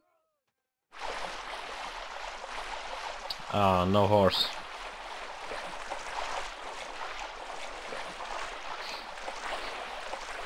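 Shallow water flows and splashes steadily.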